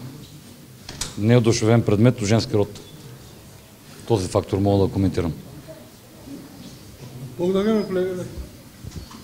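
A man speaks calmly into close microphones, in short phrases with pauses.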